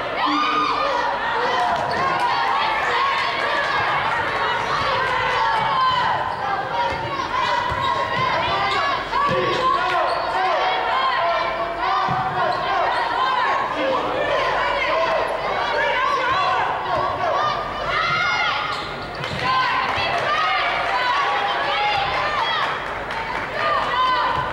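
Basketball players' sneakers squeak on a hardwood court in a large echoing gym.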